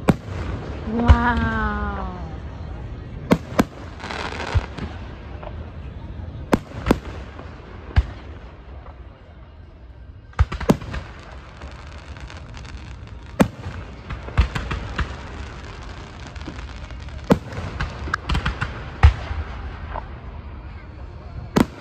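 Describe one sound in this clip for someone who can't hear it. Fireworks burst overhead with sharp bangs outdoors.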